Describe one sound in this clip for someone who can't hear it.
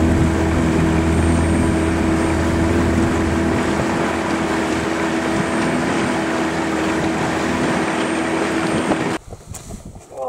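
Water splashes against a moving boat's hull.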